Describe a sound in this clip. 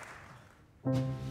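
A piano plays.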